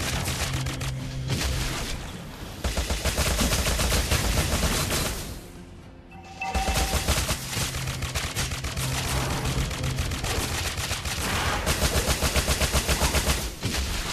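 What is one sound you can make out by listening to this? Game spell effects crackle and whoosh in rapid bursts.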